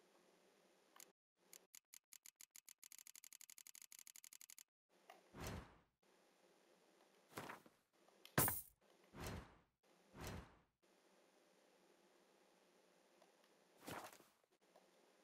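Soft menu clicks and swishes sound in short bursts.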